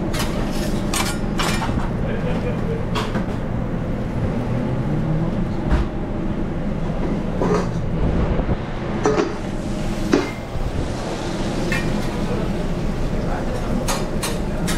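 Food sizzles steadily on a hot griddle.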